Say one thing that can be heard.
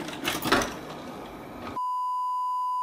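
A television hisses with static.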